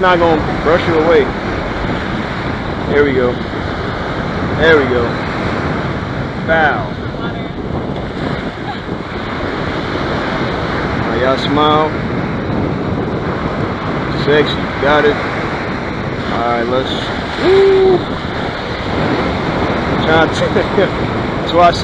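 Waves crash and wash up on the shore close by.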